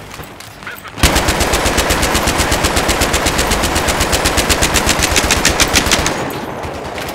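A heavy machine gun fires a long, rapid burst close by.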